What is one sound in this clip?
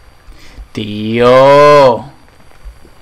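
A man lets out a loud drawn-out cry close to a microphone.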